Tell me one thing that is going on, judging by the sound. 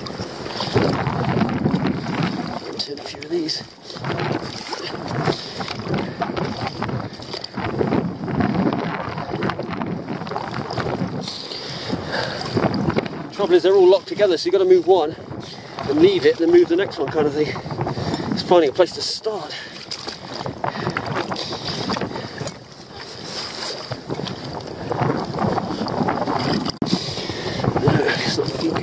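Water splashes and sloshes around rocks close by.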